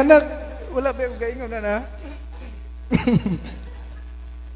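A young man speaks with animation through a microphone in an echoing room.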